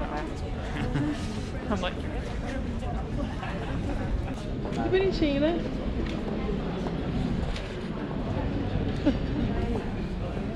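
A crowd of people murmurs and walks outdoors.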